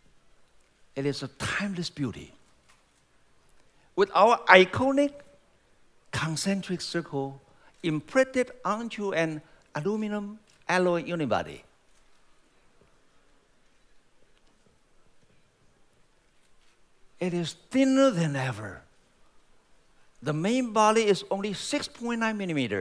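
A man speaks calmly into a microphone, heard through loudspeakers in a large hall, with pauses between phrases.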